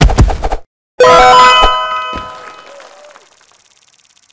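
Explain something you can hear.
A bright victory jingle plays.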